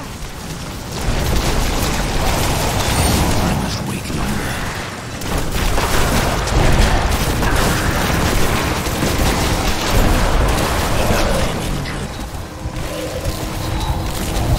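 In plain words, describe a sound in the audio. Explosions rumble and boom repeatedly.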